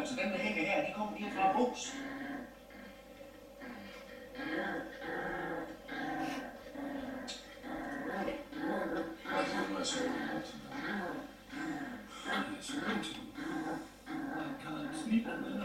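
A small dog growls and yaps while tugging at a toy.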